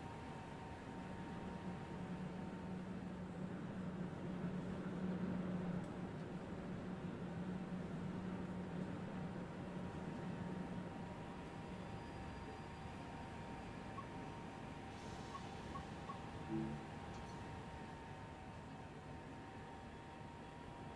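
A standing train hums steadily.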